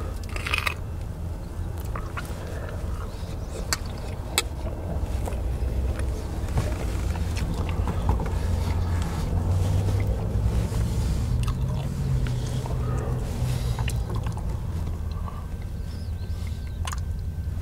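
A low engine hums steadily.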